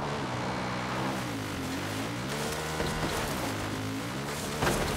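A quad bike engine revs up and down.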